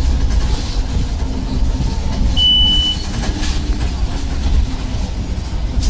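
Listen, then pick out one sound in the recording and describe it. A bus engine rumbles low and steadily while driving.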